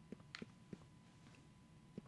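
A fire crackles quietly.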